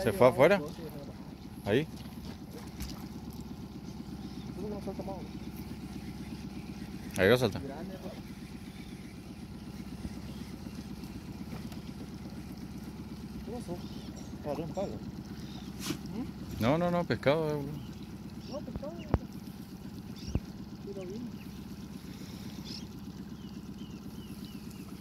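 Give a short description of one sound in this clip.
A small outboard motor hums steadily nearby.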